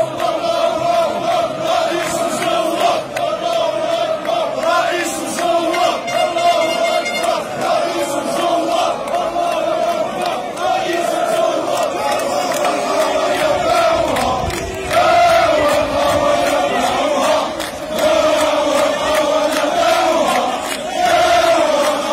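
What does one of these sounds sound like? A large crowd of men chants loudly in unison outdoors.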